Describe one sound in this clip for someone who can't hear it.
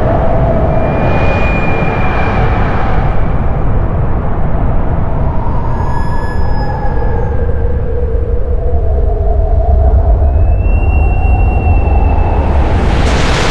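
Glasses rubbed at the rim ring with pure, sustained tones.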